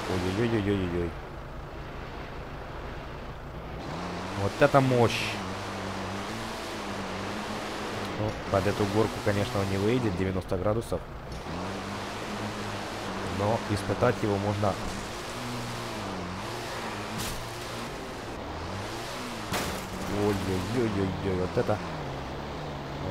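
A truck engine drones steadily and revs.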